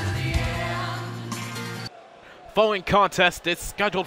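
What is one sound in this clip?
A large crowd cheers in a big echoing arena.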